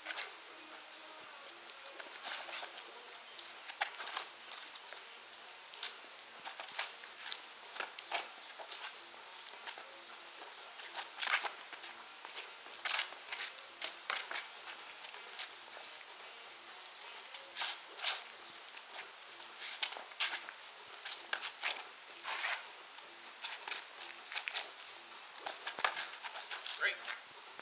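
Wooden training weapons knock against padded gloves in quick bursts.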